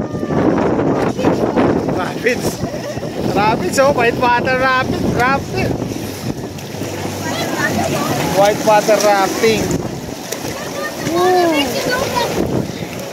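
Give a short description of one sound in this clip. Water churns and bubbles steadily close by.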